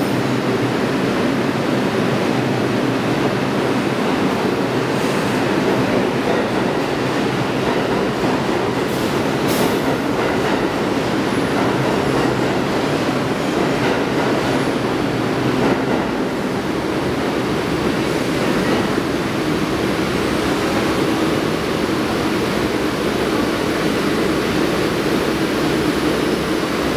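A subway train rumbles steadily past along a platform.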